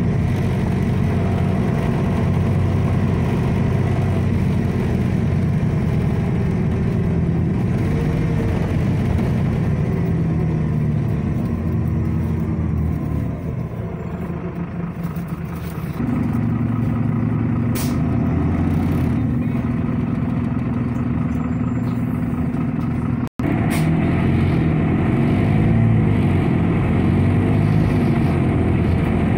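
A tram engine hums and rumbles steadily while riding along a street.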